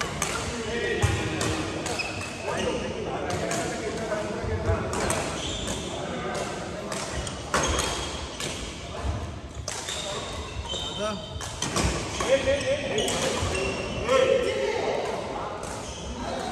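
Shuttlecocks are struck with rackets in sharp pops, echoing in a large hall.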